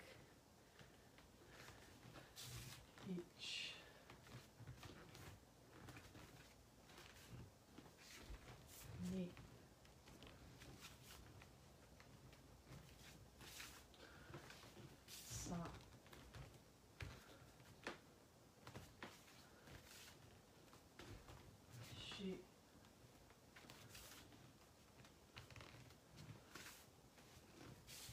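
Bare feet thump and slide on a wooden floor.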